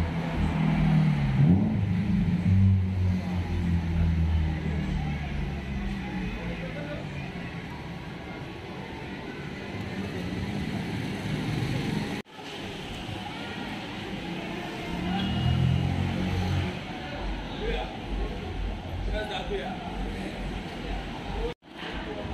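A motorcycle engine idles nearby with a low rumble.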